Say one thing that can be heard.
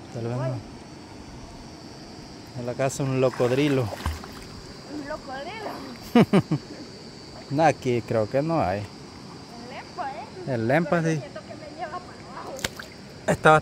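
A swimmer splashes through calm water.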